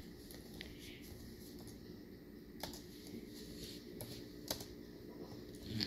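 Fingers tap on laptop keys with soft clicks.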